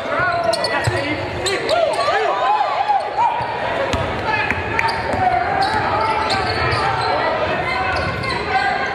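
A crowd murmurs and cheers in the stands.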